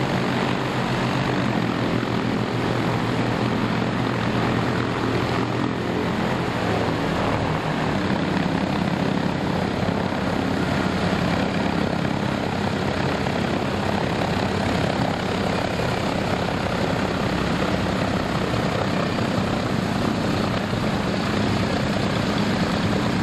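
Propeller engines drone loudly and steadily close by.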